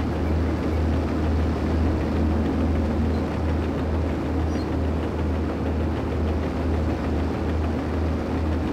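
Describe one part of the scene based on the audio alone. A bulldozer's diesel engine rumbles steadily.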